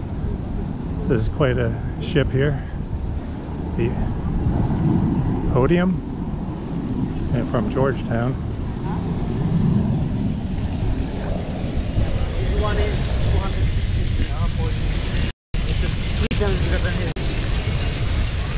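Young women and men chat casually nearby as they walk past.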